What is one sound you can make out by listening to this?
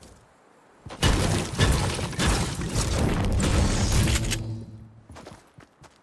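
A pickaxe strikes rock with heavy, crunching blows.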